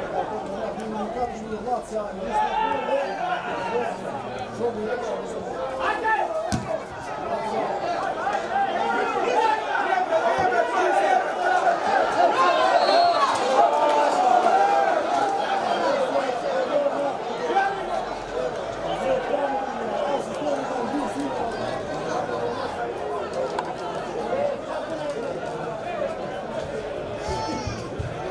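A crowd of men talks and shouts close by, outdoors.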